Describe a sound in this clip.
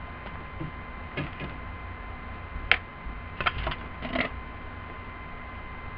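Paper rustles as it is lifted and moved.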